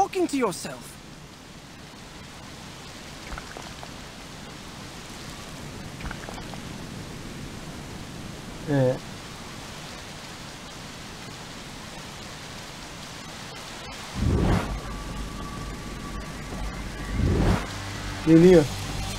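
A young man speaks in short bursts through a microphone.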